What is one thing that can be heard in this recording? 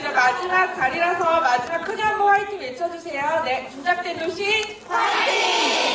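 A young woman speaks through a microphone.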